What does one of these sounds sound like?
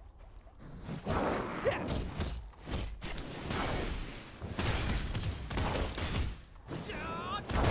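Blades strike and thud repeatedly in a fight.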